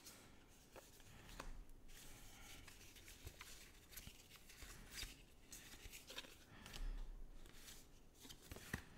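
Playing cards rustle and slide against each other as they are shuffled through by hand.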